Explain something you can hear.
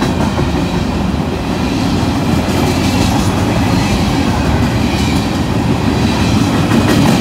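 Steel wheels squeal faintly on the track.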